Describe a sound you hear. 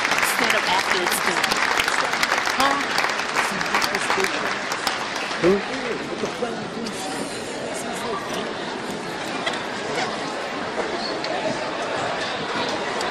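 A large crowd of people murmurs and chatters in a big echoing hall.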